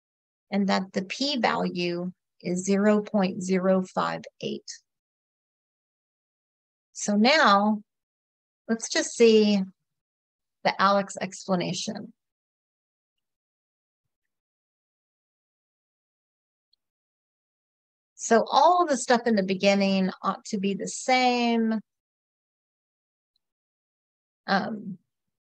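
A woman speaks calmly and clearly into a microphone, in short phrases with pauses.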